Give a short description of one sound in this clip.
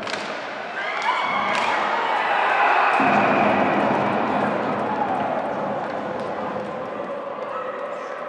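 A sparse crowd in a large echoing arena shouts and cheers.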